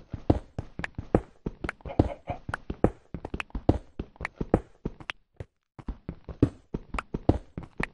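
A pickaxe chips rapidly at stone with sharp, quick taps.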